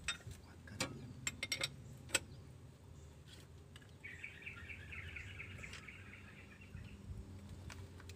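A ring spanner clicks against the metal fittings of a diesel injection pump.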